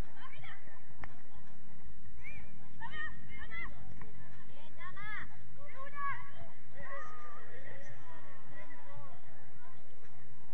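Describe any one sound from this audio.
Young girls shout and call out to each other outdoors.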